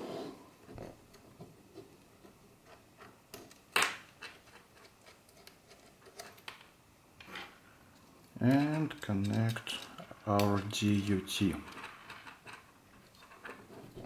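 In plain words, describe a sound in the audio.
Small metal cable connectors click and scrape as they are screwed and handled.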